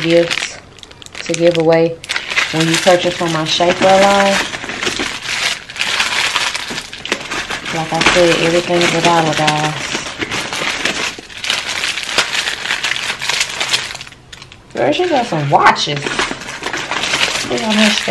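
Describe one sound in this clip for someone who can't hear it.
Plastic packets crinkle in a woman's hands.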